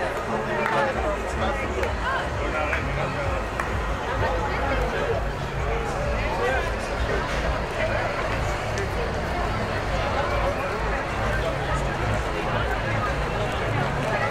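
A crowd of people chatter on a busy street outdoors.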